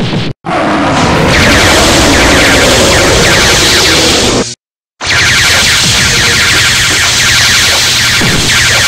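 Electric blasts crackle and roar loudly.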